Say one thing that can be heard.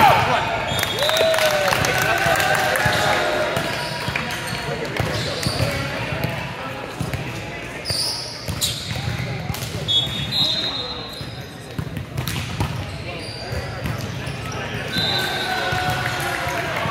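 Players call out and chatter loudly in a large echoing hall.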